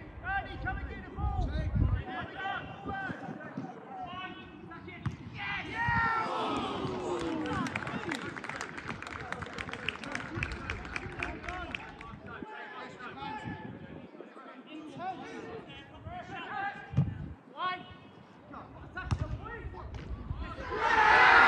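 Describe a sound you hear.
Men shout and call out across an open outdoor pitch.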